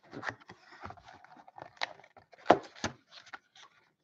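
A cardboard box flap is pulled open.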